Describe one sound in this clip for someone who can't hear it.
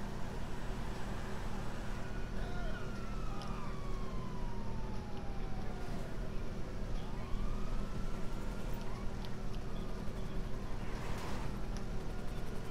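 A car engine hums steadily as a car drives along.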